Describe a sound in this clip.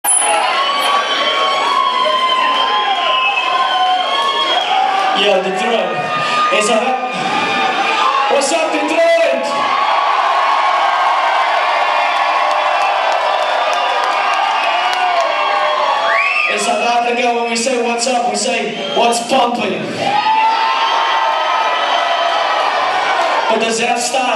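Loud electronic music plays through big speakers in a large room.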